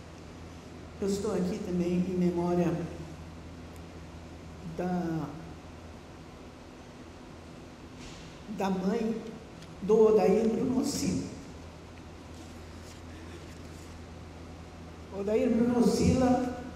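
A middle-aged woman speaks into a microphone in short bursts, calmly, through a loudspeaker.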